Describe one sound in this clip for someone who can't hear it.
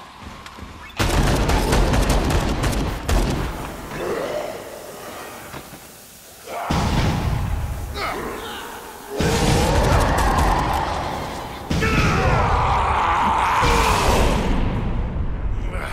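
Gunshots and impacts crash loudly during a fight.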